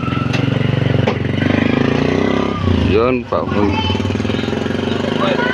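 An auto rickshaw engine putters loudly close by and pulls away.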